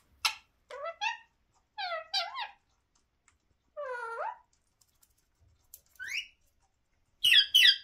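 A parrot chatters and squawks in short, rising calls close by.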